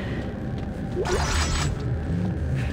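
A heavy metal door hisses and slides open.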